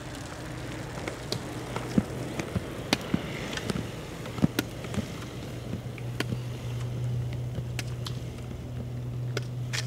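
Bicycle tyres roll past on asphalt.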